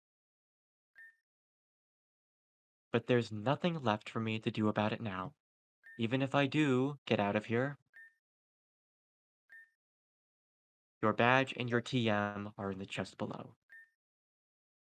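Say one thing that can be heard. A short electronic beep sounds now and then.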